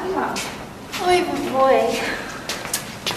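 A young woman answers with a surprised exclamation.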